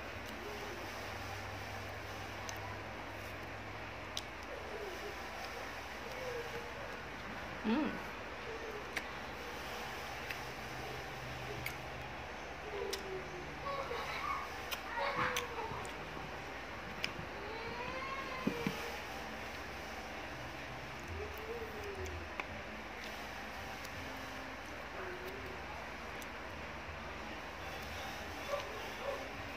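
Fruit skins crack and snap as they are peeled by hand.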